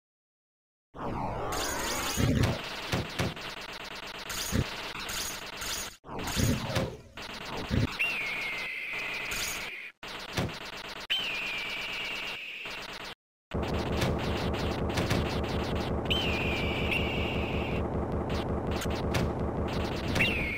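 Rapid shooting and explosion sounds burst out.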